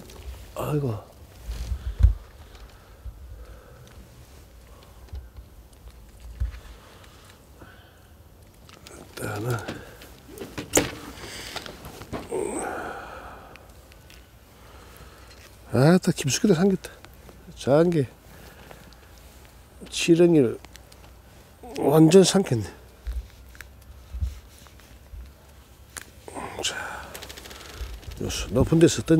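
A man talks close by, in short bursts.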